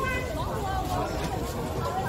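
A woman talks into a handheld microphone.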